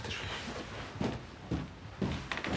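Footsteps walk away on a hard floor.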